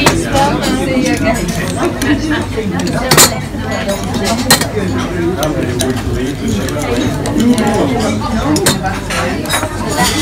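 A spoon clinks and scrapes against a plastic cup.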